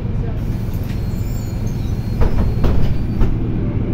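Bus doors slide shut with a thud.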